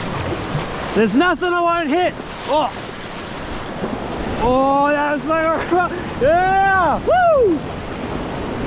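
A man speaks loudly and animatedly, close by, over the rushing water.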